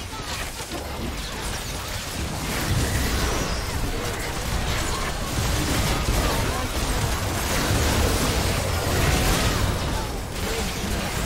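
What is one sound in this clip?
Magical combat effects crackle, whoosh and burst in quick succession.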